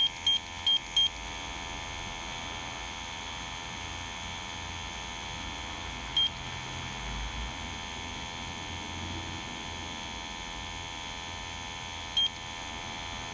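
A handheld gas detector gives short, sharp electronic beeps.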